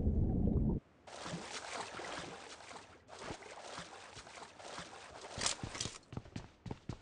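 A game character swims, splashing through water.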